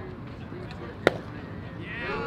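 A baseball bat cracks against a ball.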